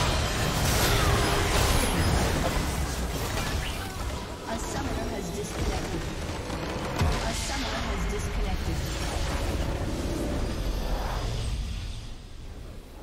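Game battle effects clash and explode loudly.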